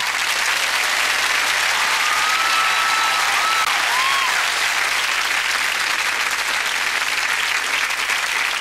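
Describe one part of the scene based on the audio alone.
A crowd claps their hands.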